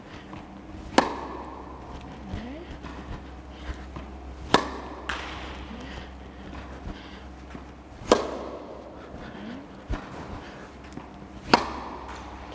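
A tennis racket hits a ball with sharp pops that echo in a large hall.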